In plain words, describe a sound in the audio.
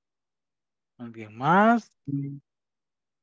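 A man speaks briefly over an online call, his voice rising.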